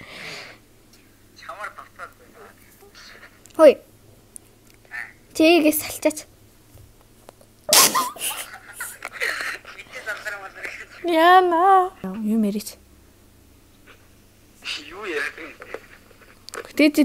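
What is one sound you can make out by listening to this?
A young woman talks and reacts with animation close by.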